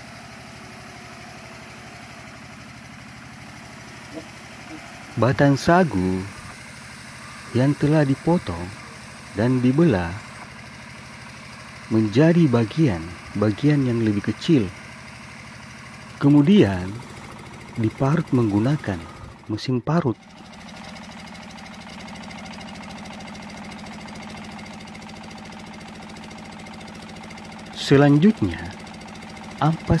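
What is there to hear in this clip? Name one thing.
A wood-grinding machine whirs steadily.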